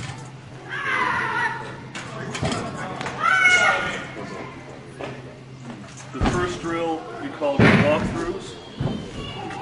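Metal hurdles clang when struck.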